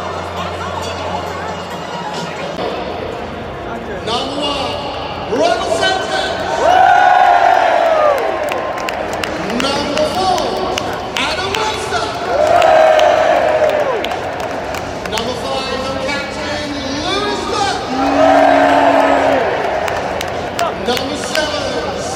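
A large crowd murmurs and cheers in a vast open stadium.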